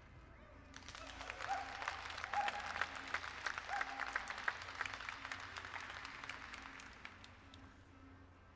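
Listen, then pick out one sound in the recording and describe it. A crowd applauds and cheers in a large hall.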